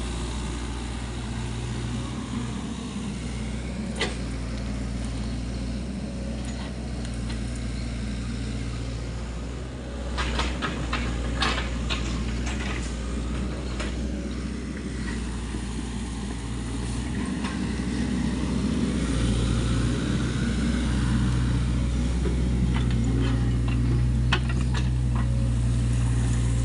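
A diesel mini excavator engine runs with a steady hum.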